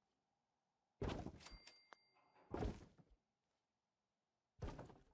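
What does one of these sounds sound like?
A heavy thud and scrape sound out.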